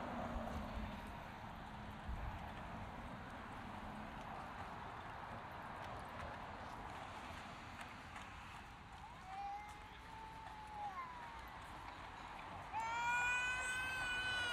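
Cars drive past on a road outdoors.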